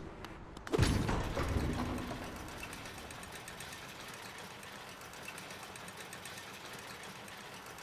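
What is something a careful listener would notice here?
A lift hums and rattles steadily as it rises.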